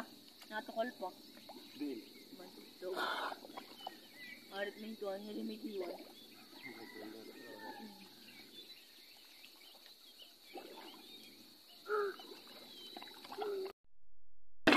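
Water splashes softly as a man moves in the sea.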